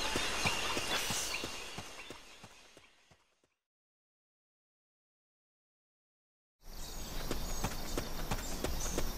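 Outdoor jungle ambience with steady rustling fades away into silence, then returns suddenly.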